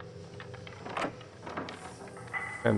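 A door handle clicks and rattles.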